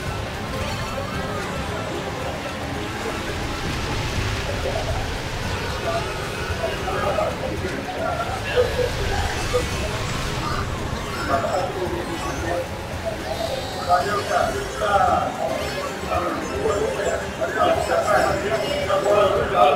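Video game kart engines hum and whine steadily.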